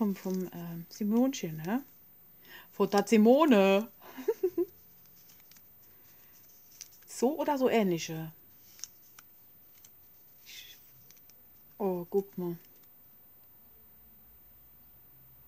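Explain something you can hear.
Paper rustles and crinkles between hands.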